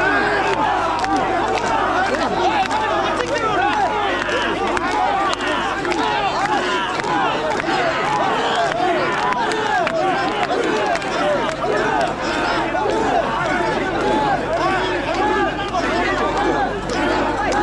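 A large crowd of men chants loudly together in rhythm outdoors.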